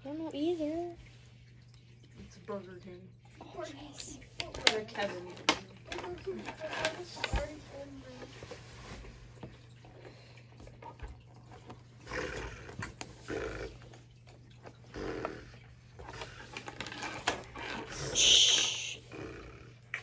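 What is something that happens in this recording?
Small plastic toy pieces click and tap against a wooden table.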